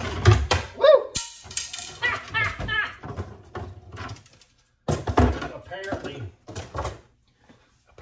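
Metal rods rattle and clink against each other.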